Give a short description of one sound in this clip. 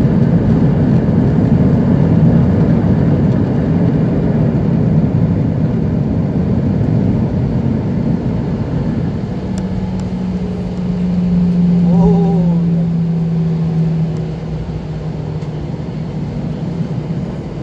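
Jet engines roar steadily from inside a taxiing airliner cabin.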